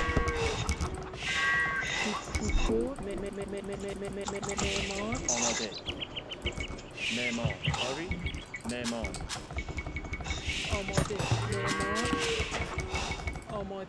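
Axes chop wood with quick, repeated knocks.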